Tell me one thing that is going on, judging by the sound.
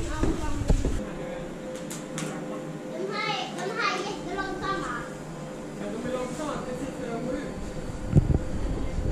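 Cable car machinery hums and rumbles steadily.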